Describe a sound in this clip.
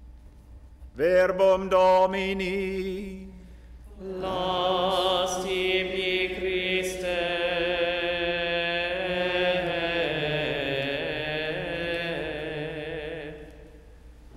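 An elderly man chants a reading in a steady sung tone through a microphone.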